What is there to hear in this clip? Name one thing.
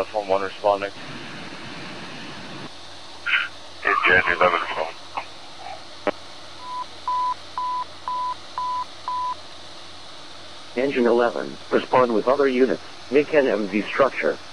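A man speaks nearby outdoors.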